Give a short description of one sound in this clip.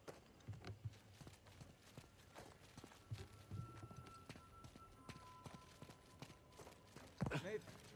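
Footsteps crunch over rubble and gravel.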